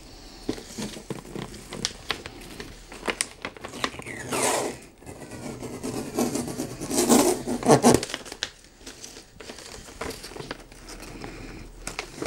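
Ribbon rustles and squeaks as it is pulled tight around a wrapped box.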